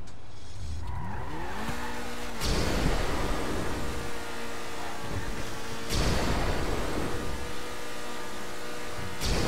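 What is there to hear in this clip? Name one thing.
A sports car engine revs up and roars loudly.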